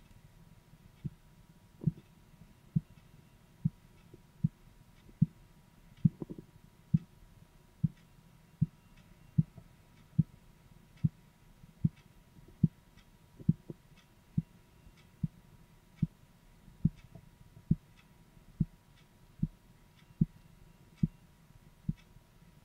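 A pulse thumps steadily and slowly through a stethoscope.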